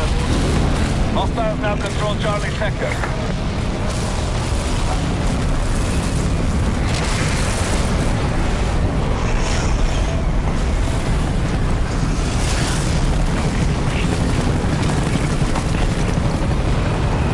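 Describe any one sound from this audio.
A tornado's wind roars loudly and steadily.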